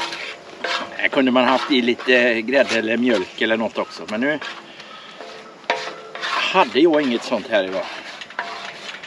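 A middle-aged man talks calmly, close by.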